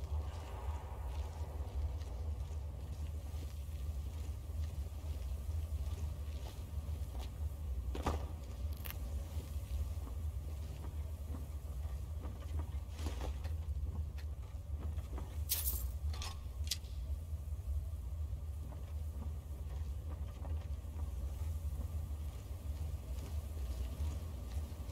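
Footsteps crunch slowly on gravel and wooden boards.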